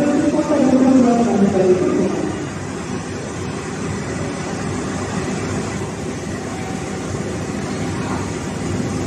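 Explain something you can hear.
A diesel locomotive engine idles with a steady low rumble.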